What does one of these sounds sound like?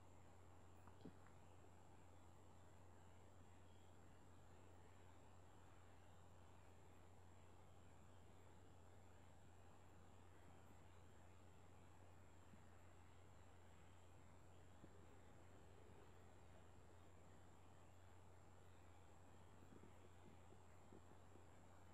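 Metal tweezers click faintly against tiny watch parts.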